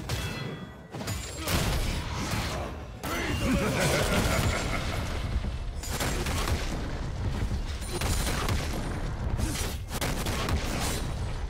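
Magic blasts and weapon hits crackle and thump in a fast fight.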